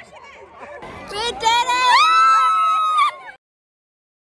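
A young woman shrieks excitedly close to the microphone.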